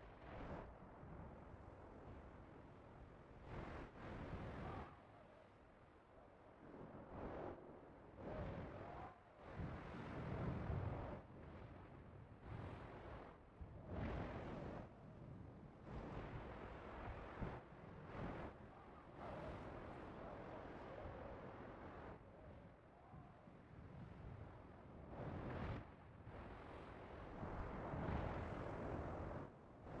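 Thunder rumbles and crackles from lightning strikes.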